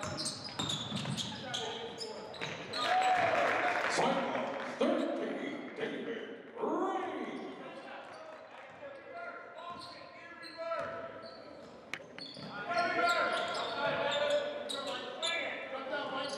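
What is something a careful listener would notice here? Young men shout and call out to one another in a large echoing gym.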